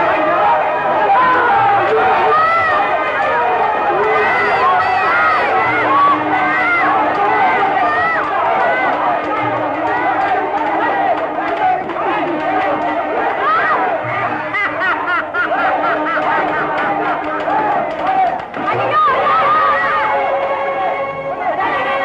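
A crowd of men shouts and yells loudly.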